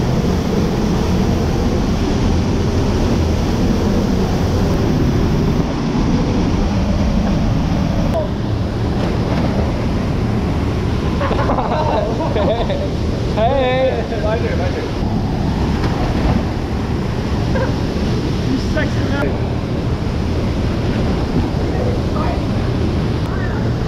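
A waterfall roars and rushing water churns loudly nearby.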